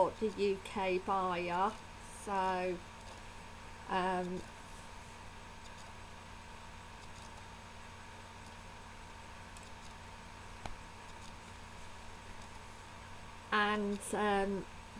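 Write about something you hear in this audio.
A woman speaks calmly into a nearby microphone, in short bursts with long pauses.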